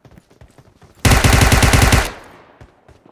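An assault rifle fires in a burst.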